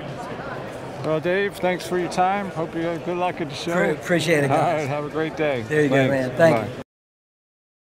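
A middle-aged man talks cheerfully and close by.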